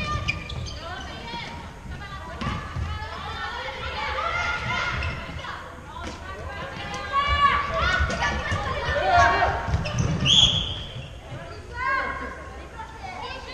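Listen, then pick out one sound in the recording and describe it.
Plastic sticks click against a ball now and then.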